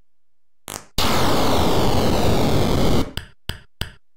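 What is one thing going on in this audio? A harsh electronic buzz from an old computer game sounds for a couple of seconds.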